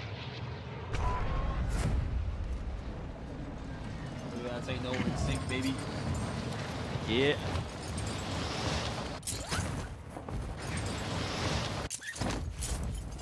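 Wind rushes loudly during a skydive.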